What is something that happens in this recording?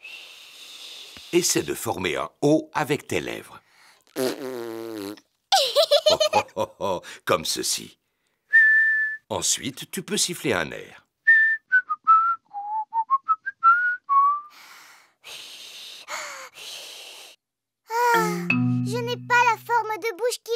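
A little girl speaks in a high voice.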